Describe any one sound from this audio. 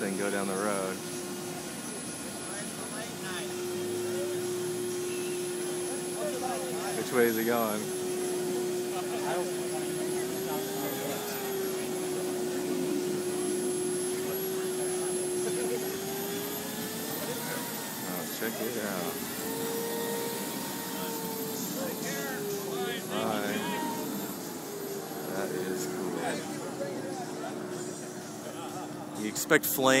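A crowd of adults chatters nearby outdoors.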